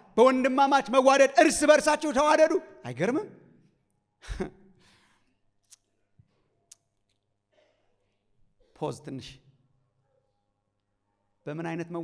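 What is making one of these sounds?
A middle-aged man preaches with animation into a microphone, in bursts with long pauses.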